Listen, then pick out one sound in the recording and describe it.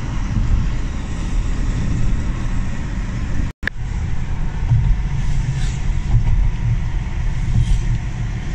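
Tyres rumble on the road surface inside a moving car.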